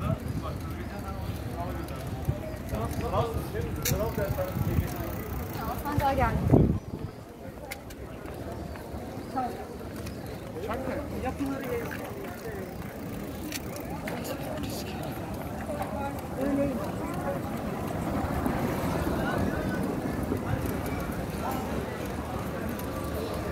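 Men and women chatter nearby outdoors.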